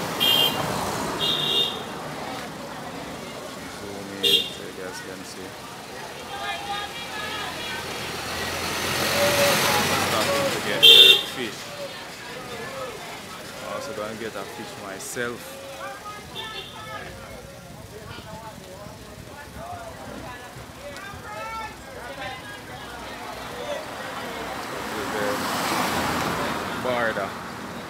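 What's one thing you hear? Men and women talk at a distance outdoors.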